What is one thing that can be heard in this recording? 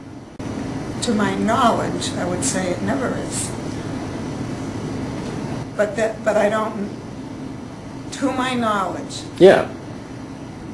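An elderly woman talks close by, in a warm, chatty voice.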